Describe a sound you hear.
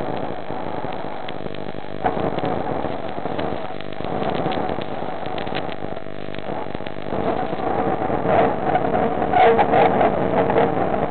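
Water swirls and hisses in a muffled underwater rush.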